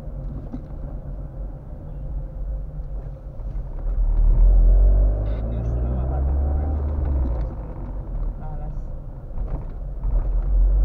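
A car engine hums steadily while driving slowly.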